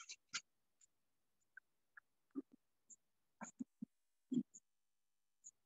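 Small objects tap softly on a tabletop.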